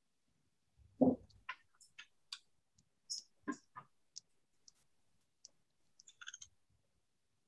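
Small wooden parts click and rattle as they are turned in the hand.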